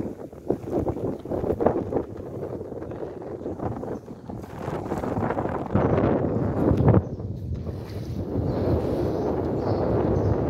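A man wades and splashes through shallow water.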